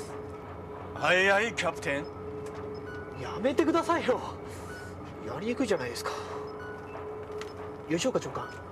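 A young man answers cheerfully nearby.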